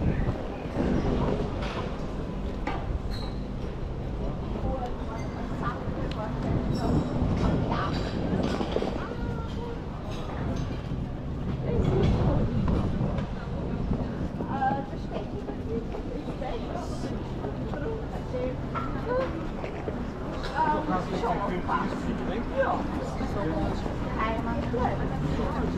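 A stroller's wheels roll over paving stones.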